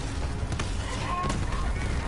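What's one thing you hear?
An explosion bursts with a crackling roar.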